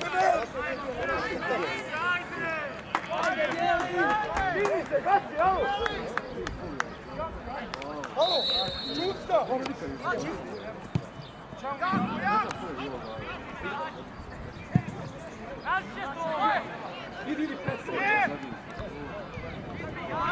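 A crowd of spectators chatters and calls out in the distance outdoors.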